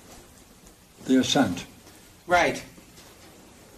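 An elderly man speaks calmly, as if lecturing.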